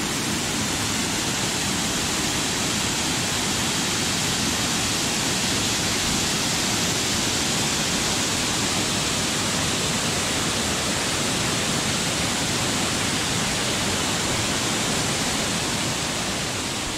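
Water roars loudly as it pours over a weir.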